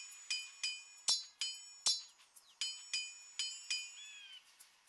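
Metal swords clash and ring in a quick series of blows.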